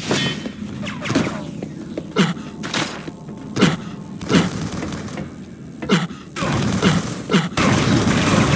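Short video game sound effects swoop down in pitch again and again.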